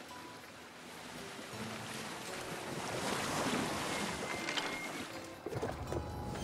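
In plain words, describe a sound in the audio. Water rushes and splashes against a moving boat.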